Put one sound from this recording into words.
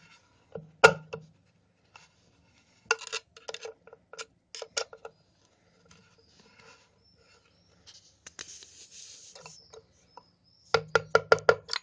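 A screwdriver clicks and scrapes against metal.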